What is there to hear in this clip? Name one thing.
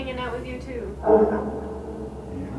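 A woman speaks calmly nearby in a small room.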